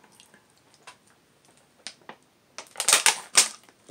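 A woman gulps water from a plastic bottle.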